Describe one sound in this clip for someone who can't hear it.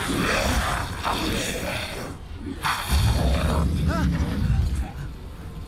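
A monster roars loudly and deeply.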